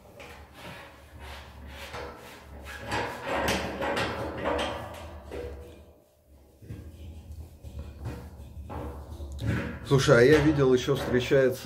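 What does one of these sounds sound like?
A metal fitting squeaks and scrapes faintly as it is twisted by hand.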